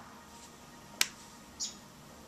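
Small clay pieces knock lightly against a hard surface.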